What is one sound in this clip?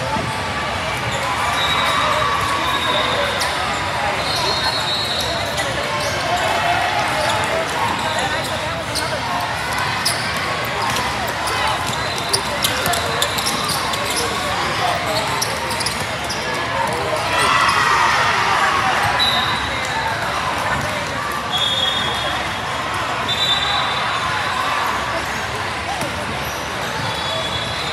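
A crowd of spectators chatters throughout a large echoing hall.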